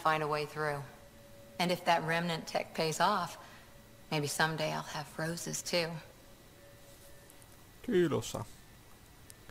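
A young woman speaks calmly and clearly.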